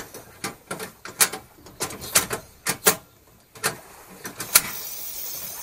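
A gas stove igniter clicks.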